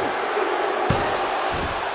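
A body slams onto a wrestling ring mat with a thud.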